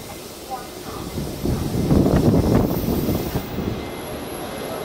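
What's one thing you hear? A diesel locomotive rumbles loudly as it pulls in.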